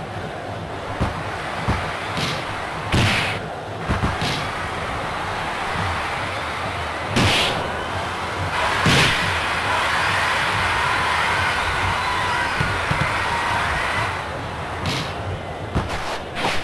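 A football is kicked with sharp thumps.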